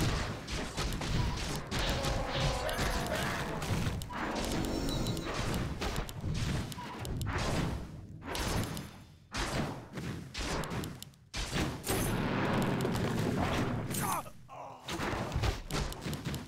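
Swords clash and spells crackle in a fight.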